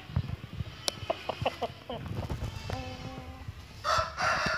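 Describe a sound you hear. A rooster clucks and calls nearby.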